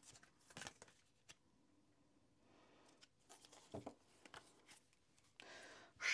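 Cards rustle softly as a deck is shuffled by hand.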